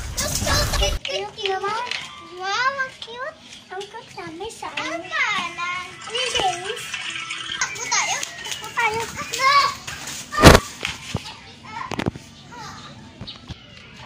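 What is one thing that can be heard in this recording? Young children chatter and squeal excitedly close by.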